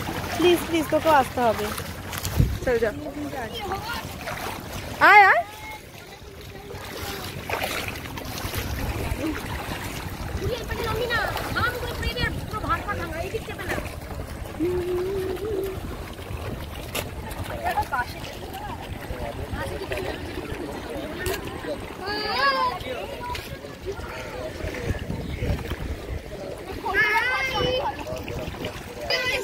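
Women and children talk and call out nearby.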